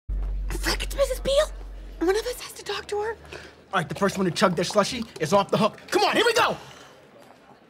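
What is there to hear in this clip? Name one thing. A woman speaks nervously, close by.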